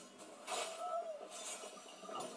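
A blade strikes in a sword fight.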